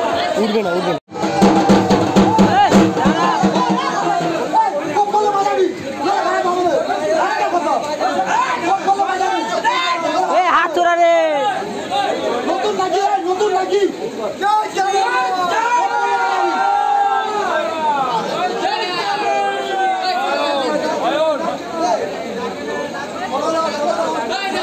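A crowd of men talks and shouts all around.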